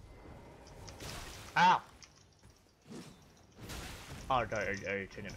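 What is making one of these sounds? A sword whooshes through the air.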